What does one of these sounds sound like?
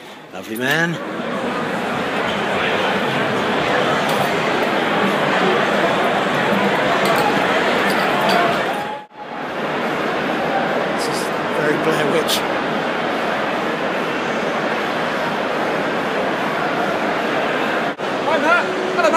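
A large crowd chatters and cheers loudly nearby.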